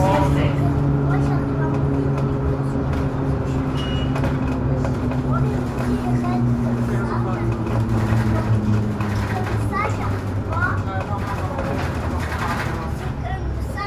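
A bus engine hums steadily from inside the bus as it drives along.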